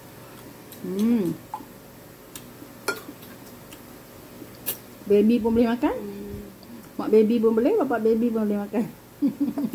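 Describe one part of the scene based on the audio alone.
A spoon clinks against a metal plate.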